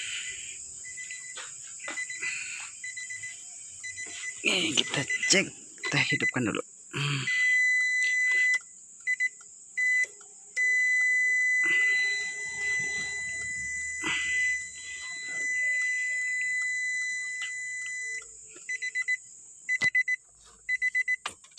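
A car's warning chime beeps repeatedly and steadily.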